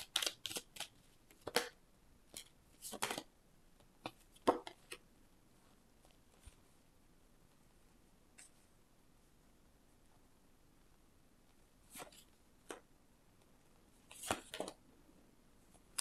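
Playing cards shuffle and flick against each other with short papery rustles.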